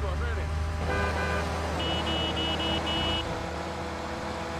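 A car engine idles nearby.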